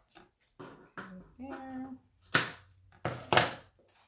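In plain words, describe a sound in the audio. Scissors snip.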